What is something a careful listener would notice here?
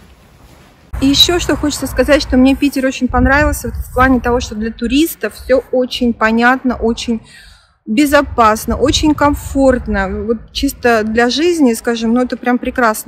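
A middle-aged woman speaks calmly and close up.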